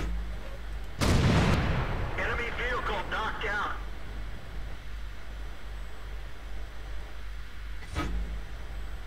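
A tank cannon fires with a loud, booming blast.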